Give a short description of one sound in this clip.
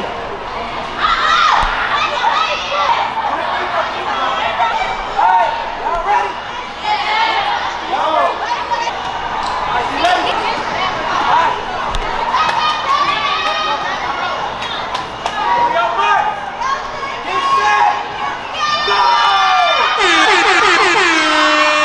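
A young woman shrieks excitedly.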